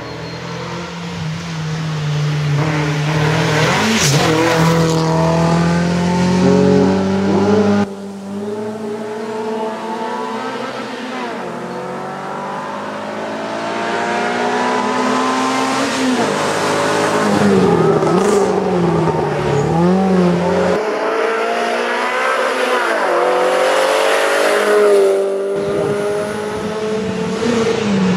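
A racing car engine roars loudly and revs hard through the gears as it speeds past.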